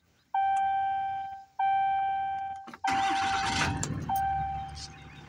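A car's warning chime sounds several times, each ring slowly fading.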